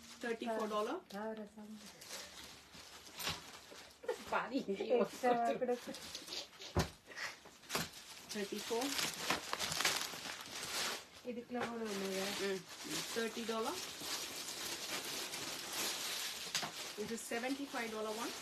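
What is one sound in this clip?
A middle-aged woman speaks with animation close by.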